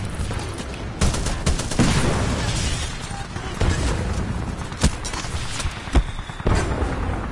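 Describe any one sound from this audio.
Gunshots crack loudly in sharp bursts.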